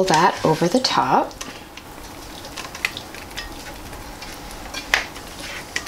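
A metal spatula scrapes food out of a frying pan.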